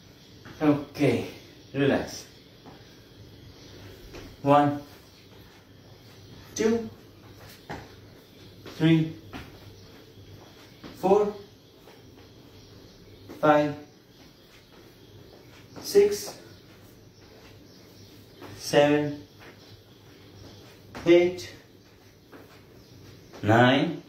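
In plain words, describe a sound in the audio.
A man counts aloud in short, evenly spaced calls.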